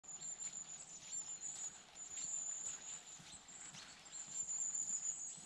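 Footsteps crunch on a forest floor.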